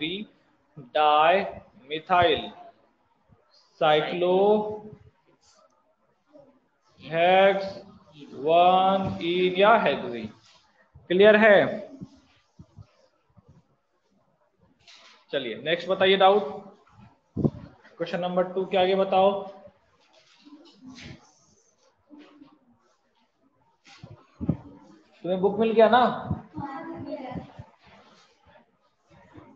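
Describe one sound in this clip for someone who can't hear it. A man explains calmly through a microphone, in short bursts with pauses.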